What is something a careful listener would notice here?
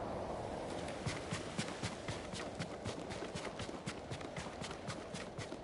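Footsteps pound quickly on sand as a person runs.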